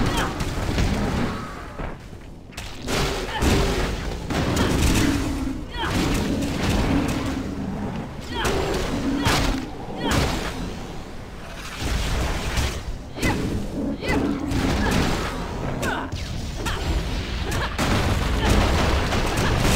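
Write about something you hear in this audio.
Magic spells burst and crackle in quick succession.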